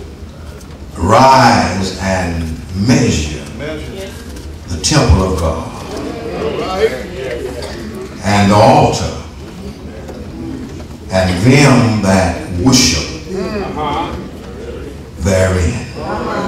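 An elderly man speaks slowly and solemnly into a microphone, heard over a loudspeaker in a large room.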